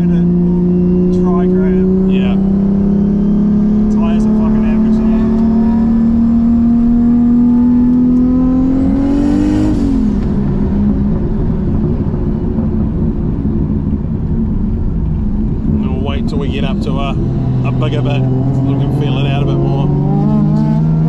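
A car engine roars loudly, its pitch climbing steadily before dropping off.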